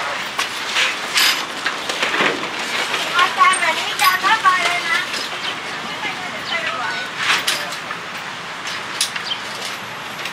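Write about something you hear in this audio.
Metal table legs clank and rattle as a folding table is opened.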